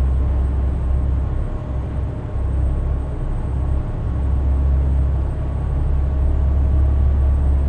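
A truck engine hums low and steady as the truck drives along.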